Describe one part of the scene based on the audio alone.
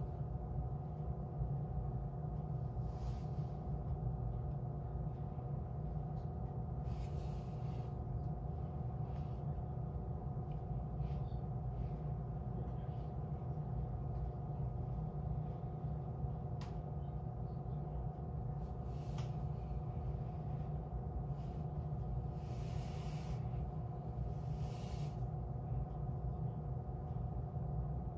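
A train's diesel engine idles with a steady low hum.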